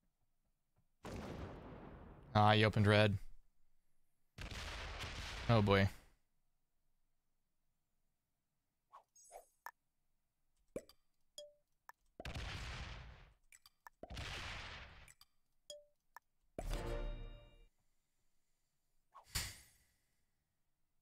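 Game sound effects whoosh and boom in short bursts.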